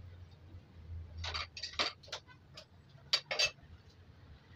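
A metal spoon clinks and scrapes against a pan.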